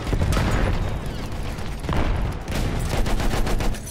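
An explosion booms with a heavy rumble.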